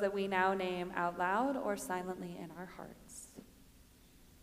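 A woman sings a short phrase through a microphone.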